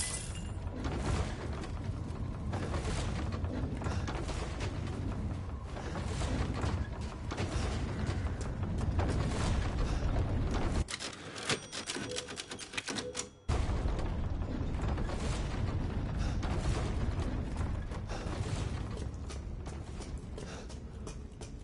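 Footsteps crunch through snow and thump on wooden boards.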